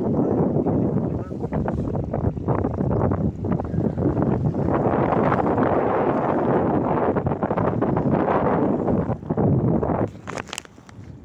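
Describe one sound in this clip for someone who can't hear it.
Wind blusters loudly across the microphone outdoors.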